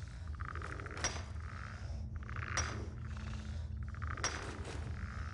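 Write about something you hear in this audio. A pickaxe strikes rock with sharp metallic clinks.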